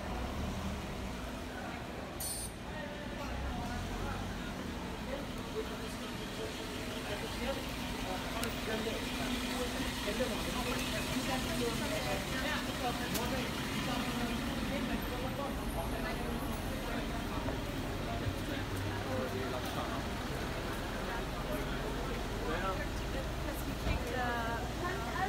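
Traffic hums steadily in the background.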